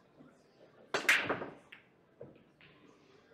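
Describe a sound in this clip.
Pool balls crack loudly and clatter apart as a rack is broken.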